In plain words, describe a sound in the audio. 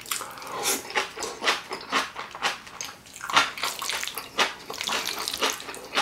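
A young man chews food wetly and noisily close to a microphone.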